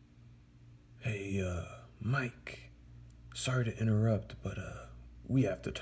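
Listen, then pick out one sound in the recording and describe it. A man speaks with animation, in a cartoonish voice.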